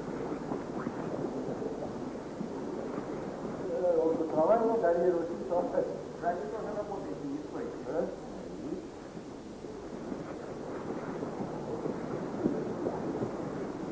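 A group of people murmur and talk quietly in the background.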